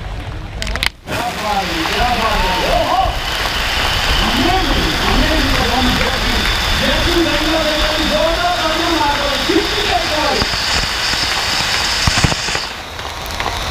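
Stage spark fountains hiss and crackle loudly.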